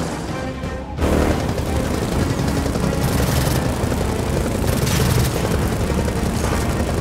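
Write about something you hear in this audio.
A motorbike engine rumbles and revs.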